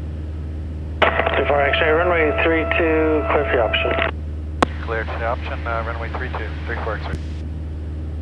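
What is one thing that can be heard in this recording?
A middle-aged man talks calmly through a headset microphone.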